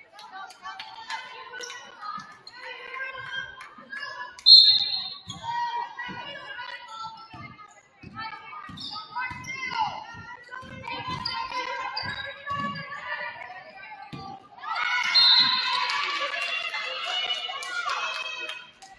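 Young women shout and call out to each other across the court.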